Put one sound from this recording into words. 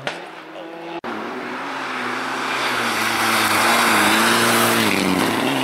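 A second rally car engine roars and climbs in pitch as the car approaches close by.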